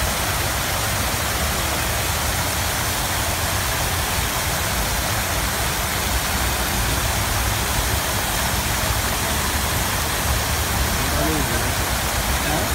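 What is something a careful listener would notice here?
Fountain jets spray and splash into a pool.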